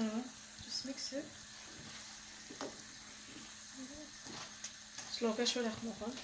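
A wooden spoon scrapes and stirs thick food in a pan.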